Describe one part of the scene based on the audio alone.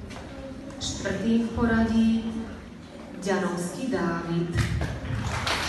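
A woman speaks through a microphone in a large echoing room.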